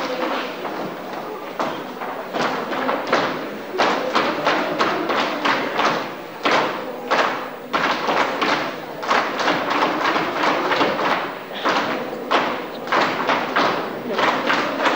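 Children's feet stamp and tap in rhythm on a wooden stage.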